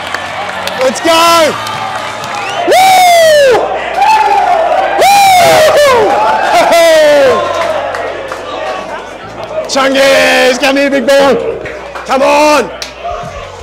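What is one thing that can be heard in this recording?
Young men shout and cheer loudly close by, in a room with hard, echoing walls.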